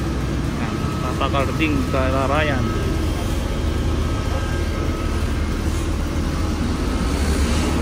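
A plastic sack rustles as it is carried.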